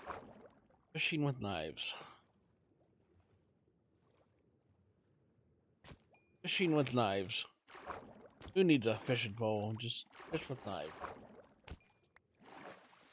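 A man talks casually and close to a microphone.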